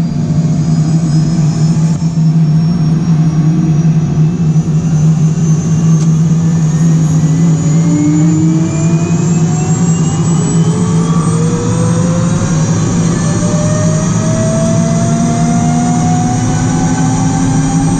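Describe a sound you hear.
A helicopter turbine whines loudly, its pitch slowly rising as it spools up.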